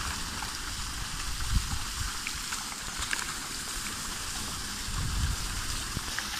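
Fish flap and splash in shallow water.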